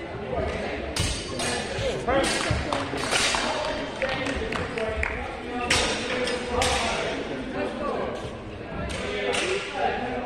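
Steel swords clash and clang sharply.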